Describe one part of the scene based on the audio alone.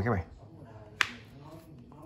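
A button clicks on a handheld game console.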